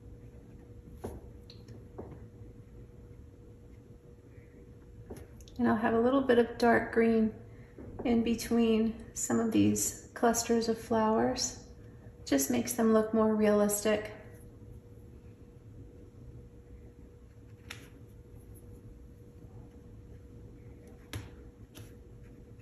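A paintbrush softly dabs and brushes across paper.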